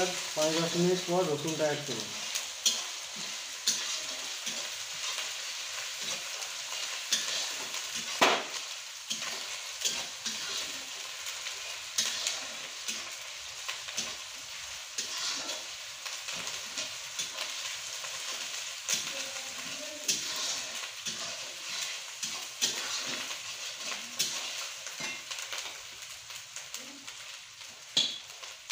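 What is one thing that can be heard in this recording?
Oil sizzles and crackles steadily in a hot wok.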